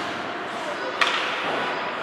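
A hockey stick strikes a puck with a sharp crack.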